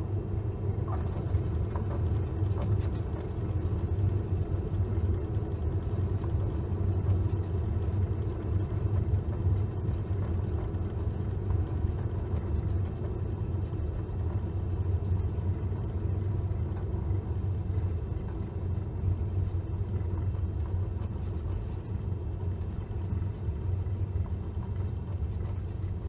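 A small plane's propeller engine drones steadily.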